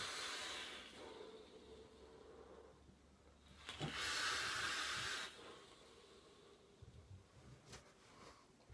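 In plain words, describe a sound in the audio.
A young man exhales a long breath of vapour.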